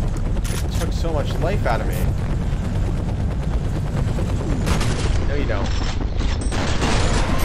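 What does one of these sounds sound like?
A rifle fires a shot in a video game.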